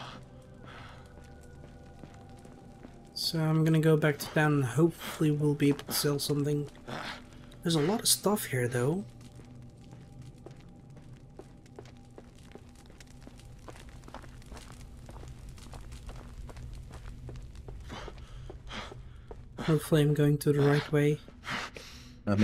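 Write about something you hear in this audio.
Footsteps crunch slowly on rocky ground.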